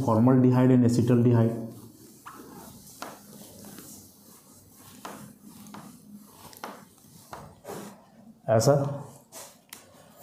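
A man speaks calmly, close by, as if lecturing.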